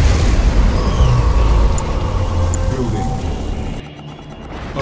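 A huge explosion booms and rumbles deeply.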